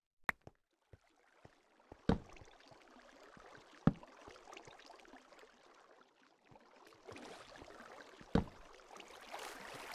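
Water flows and splashes steadily.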